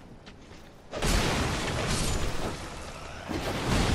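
A sword swings and strikes.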